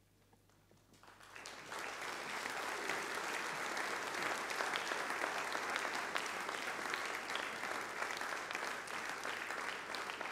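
An audience applauds steadily in a large hall.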